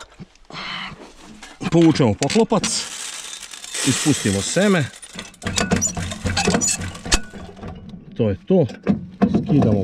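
Metal parts clank and click as they are handled.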